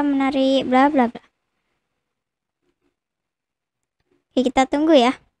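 A young girl speaks close into a microphone.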